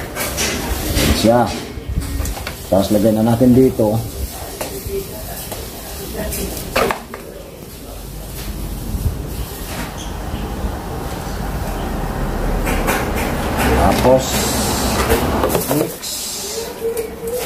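A plastic bottle crinkles as it is handled.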